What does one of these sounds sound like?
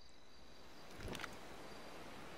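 A phone clicks shut.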